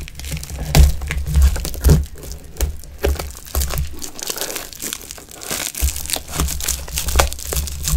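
Scissors snip through plastic wrapping.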